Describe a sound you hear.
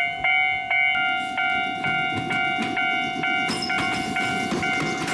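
A train rumbles closer along the tracks.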